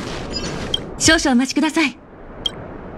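A magical shimmering whoosh sweeps up.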